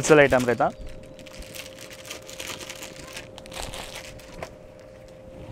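A plastic bag rustles and crinkles as clothing is handled.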